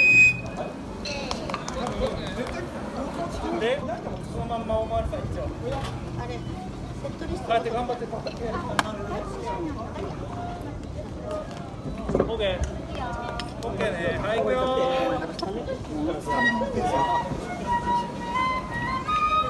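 Women talk and laugh nearby outdoors.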